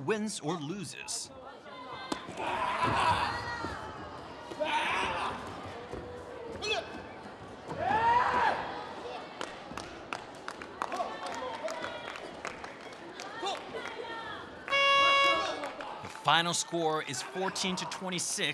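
Kicks thud against padded body protectors.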